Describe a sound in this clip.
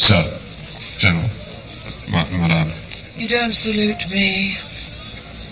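A man speaks calmly through a television loudspeaker.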